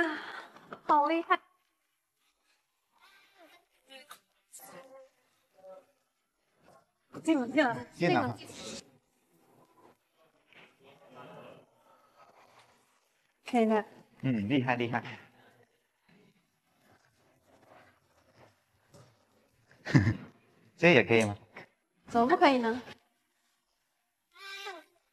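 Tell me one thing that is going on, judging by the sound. A young woman speaks playfully and laughs.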